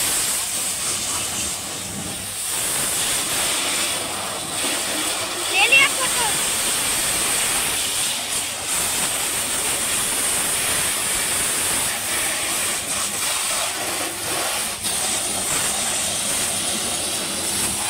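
A high-pressure washer sprays water hard against a car's bodywork.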